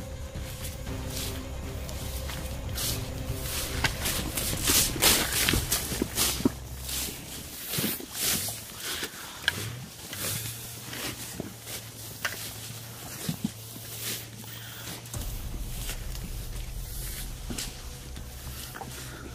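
Leaves and branches rustle and swish as people push through thick undergrowth.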